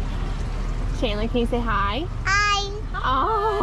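A young girl speaks brightly in a high voice close by.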